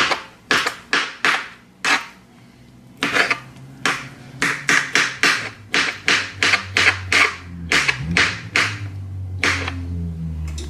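A knife chops through soft food onto a cutting board with quick, sharp taps.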